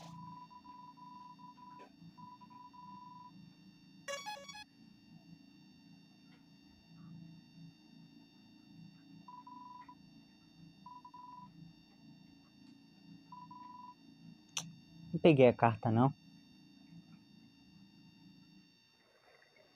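Chiptune-style video game music plays.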